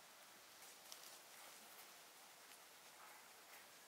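Footsteps pass softly over grass.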